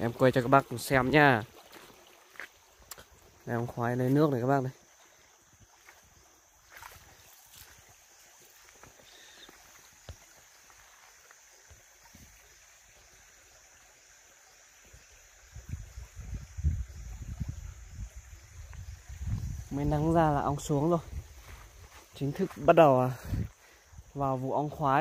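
Shallow water trickles softly over stones.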